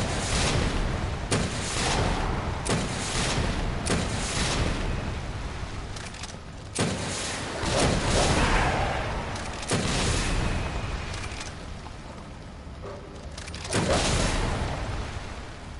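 Rocket blasts boom and roar loudly, one after another.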